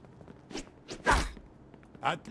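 A man's punch lands with a heavy thud.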